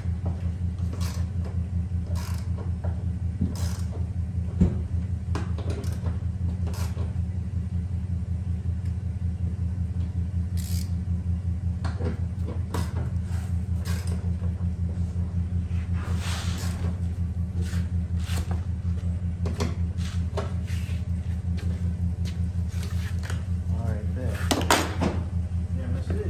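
Plastic clips click and snap as a car door panel is pried off.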